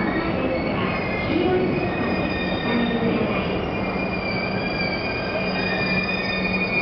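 A train's brakes squeal in high, drawn-out tones.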